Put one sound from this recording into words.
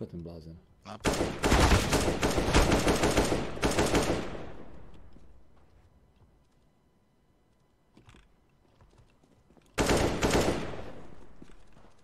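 Rifle gunfire rattles in loud bursts.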